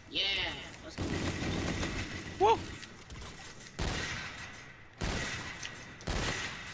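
Sniper rifle shots boom loudly, each followed by a rolling echo.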